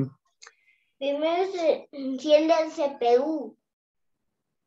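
A young child speaks in a high voice over an online call.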